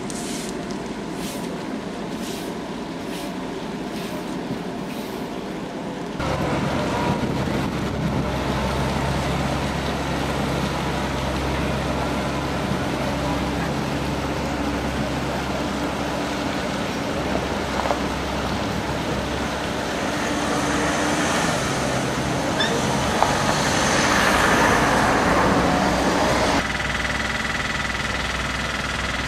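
City traffic hums in the background outdoors.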